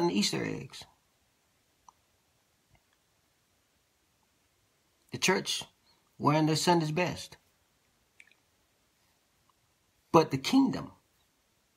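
A man speaks calmly and close by, in short bursts with long pauses.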